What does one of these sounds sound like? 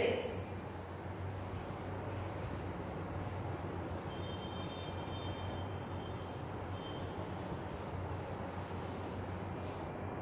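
A cloth duster rubs across a chalkboard.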